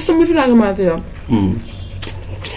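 A woman slurps noodles loudly, close up.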